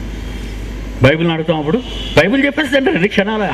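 An elderly man speaks with emphasis into a microphone.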